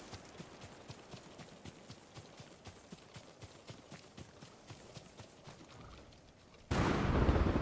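Footsteps crunch through brush and leaves at a quick, even pace.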